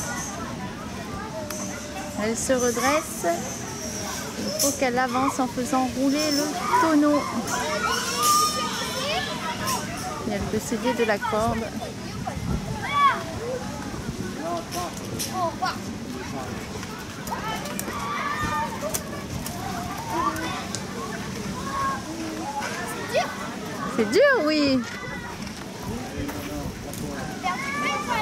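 Children talk and call out nearby outdoors.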